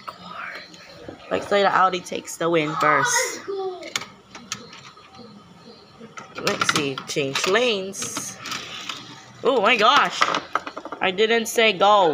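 Small plastic toy cars clatter and click against plastic track pieces.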